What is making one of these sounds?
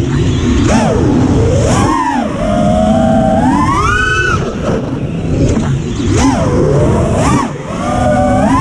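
A small drone's motors whine loudly, rising and falling sharply in pitch.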